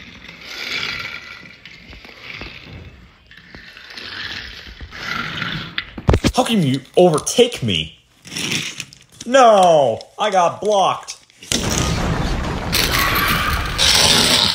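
Small toy cars roll across a wooden floor.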